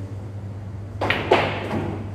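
A cue stick strikes a ball with a sharp click.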